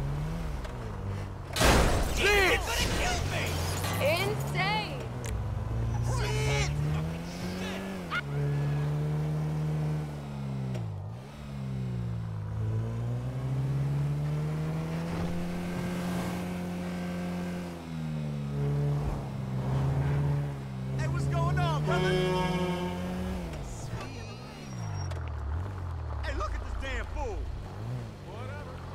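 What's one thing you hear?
A car engine revs and hums, rising and falling as it speeds up and slows down.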